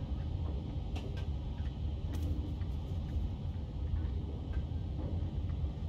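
A cat's paws pad softly on a hard floor.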